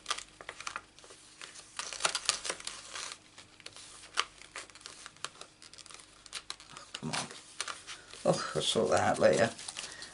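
A thin plastic sleeve crinkles and rustles as it is handled.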